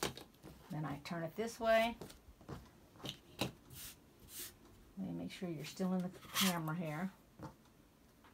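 Fabric rustles softly as hands fold it.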